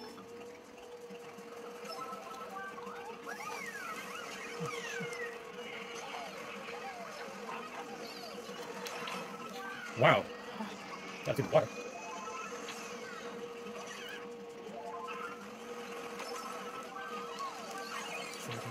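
Video game kart engines hum and buzz steadily through a television speaker.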